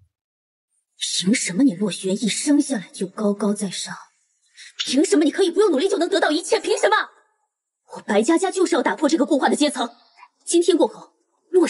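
A young woman speaks tensely, close by.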